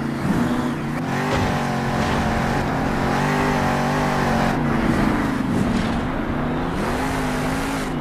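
Huge tyres crunch and thump on dirt.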